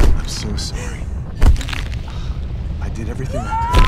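A woman sobs and speaks tearfully, close by.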